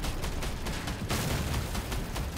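A heavy gun fires a loud shot.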